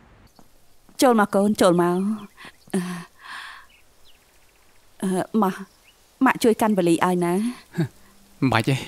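A middle-aged woman talks warmly, close by.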